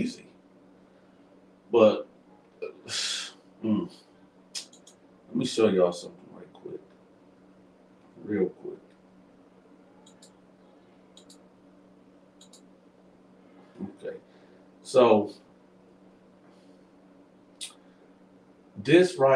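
A keyboard clicks as a man types.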